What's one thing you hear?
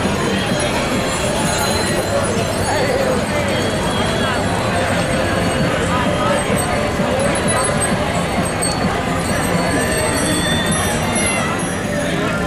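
Many bicycles roll past on pavement.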